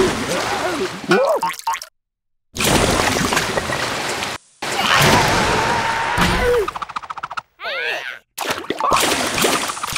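A jet of water sprays out with a hissing rush.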